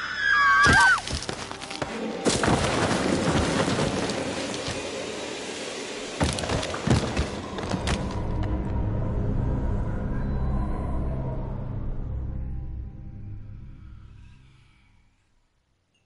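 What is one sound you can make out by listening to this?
Wind roars loudly outdoors, then slowly fades away.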